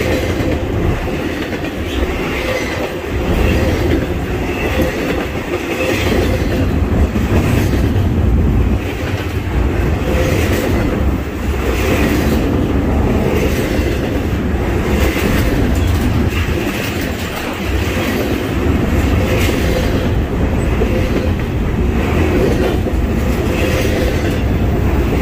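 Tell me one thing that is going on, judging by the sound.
Steel wheels clatter and squeal rhythmically on the rails.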